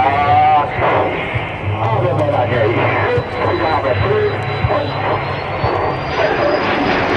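A jet engine roars loudly overhead with a high whine.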